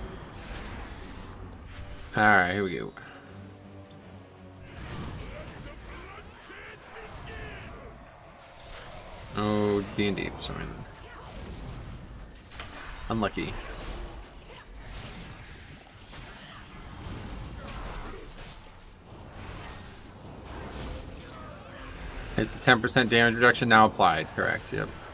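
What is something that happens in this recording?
Magic spells crackle and whoosh in a fast fight.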